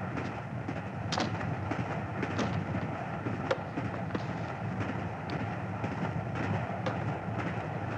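Luggage knocks against a metal rack overhead.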